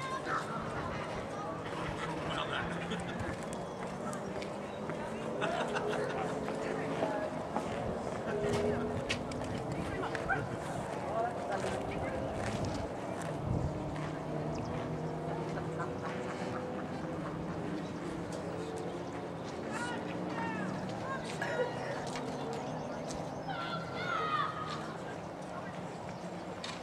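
A horse canters with muffled hoofbeats on sand.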